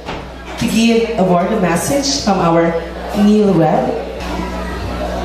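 A young man sings into a microphone, heard through loudspeakers.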